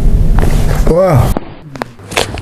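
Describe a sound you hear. A man groans loudly.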